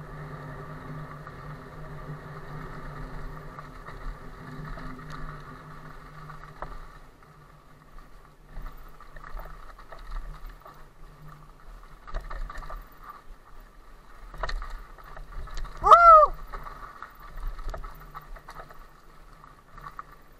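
A bicycle rattles and clunks over bumps.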